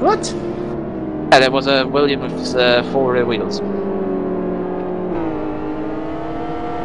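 Racing car engines whine at high revs, shifting pitch as the cars pass.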